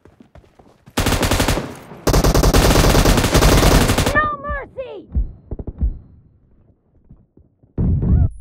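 A machine gun fires in loud rapid bursts.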